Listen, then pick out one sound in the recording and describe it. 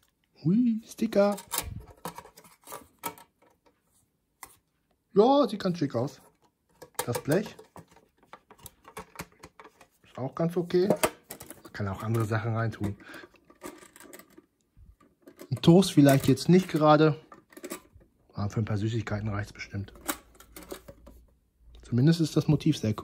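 A metal tin clicks and clanks as hands handle it.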